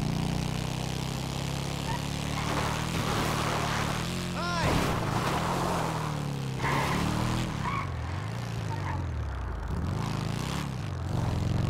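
A motorcycle engine rumbles and revs up and down.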